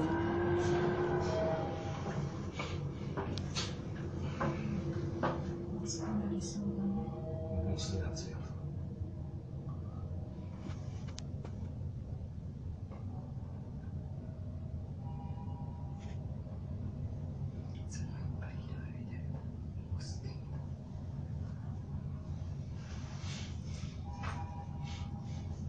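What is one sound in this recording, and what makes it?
An elevator car hums and rumbles steadily as it rises.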